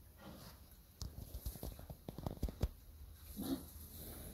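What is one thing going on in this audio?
Pigs snuffle and rustle through dry straw.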